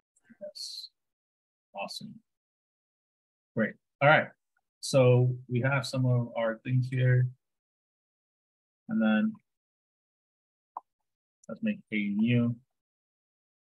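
A man talks calmly over a microphone, in short phrases with pauses.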